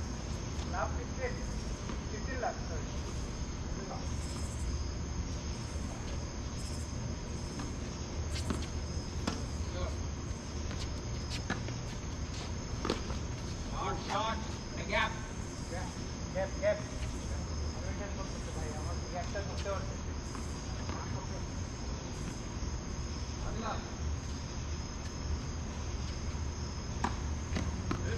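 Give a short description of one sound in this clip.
Tennis balls are struck with rackets, with sharp pops now and then.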